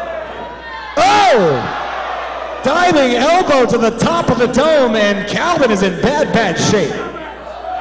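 A crowd of men and women chants loudly in unison.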